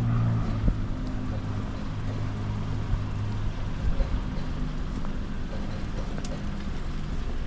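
A car engine idles nearby with a low steady hum.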